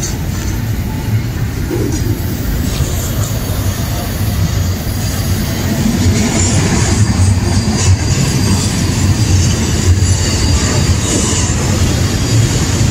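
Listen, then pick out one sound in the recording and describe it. Metal squeals and clanks between the train's cars.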